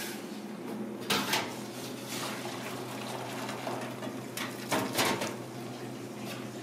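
Water pours and splashes into a strainer in a sink.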